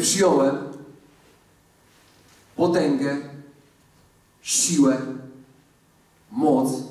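A man speaks with animation through a microphone in a large room with a slight echo.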